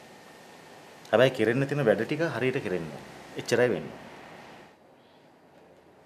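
A young woman speaks softly and pleasantly.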